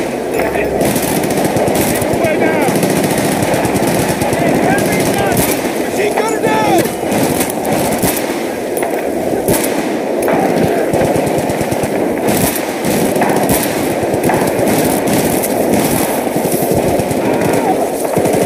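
Gunfire rattles in bursts nearby.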